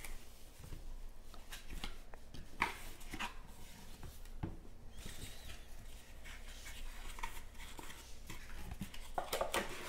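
Cardboard box lids scrape and tap as they are opened.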